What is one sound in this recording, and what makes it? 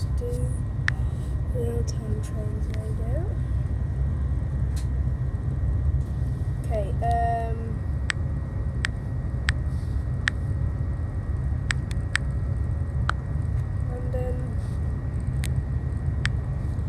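A finger taps on a phone's touchscreen, giving light clicks.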